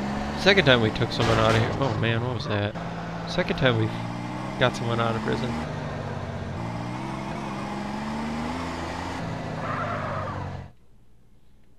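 A car engine hums steadily and then cuts out.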